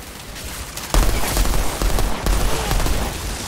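Rapid gunfire rattles loudly at close range.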